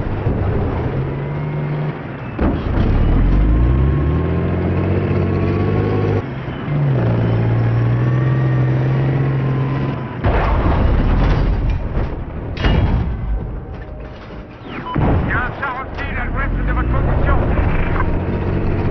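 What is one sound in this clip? A tank engine rumbles and whines, rising and falling in pitch.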